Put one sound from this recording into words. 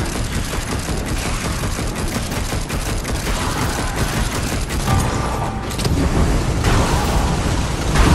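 Magic blasts whoosh and crash.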